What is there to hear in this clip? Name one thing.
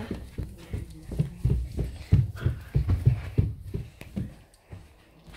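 Feet in socks thump quickly across a carpeted floor.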